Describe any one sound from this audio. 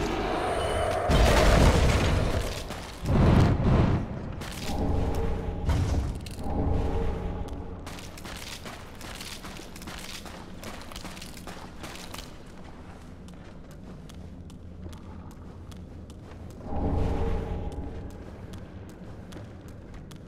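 Armoured footsteps crunch over stone and gravel.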